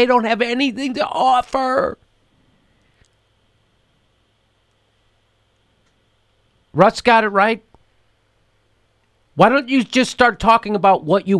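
A middle-aged man talks with animation close to a microphone, pausing between phrases.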